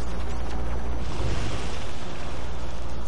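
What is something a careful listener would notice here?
A game vehicle's jets hiss with a rushing burst.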